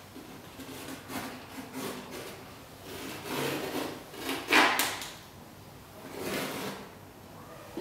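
Plastic sheeting rustles and crinkles as it is handled.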